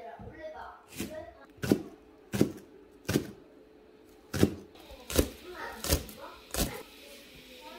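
A knife chops sharply on a cutting board.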